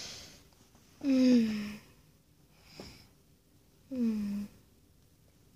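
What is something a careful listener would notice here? A squeaky plush toy squeaks twice, close by.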